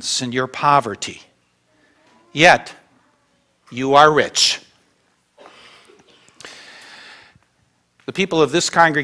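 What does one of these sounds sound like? An elderly man speaks slowly with long pauses.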